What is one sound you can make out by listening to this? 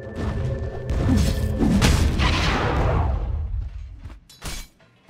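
Magic spells crackle and whoosh during a fight in a video game.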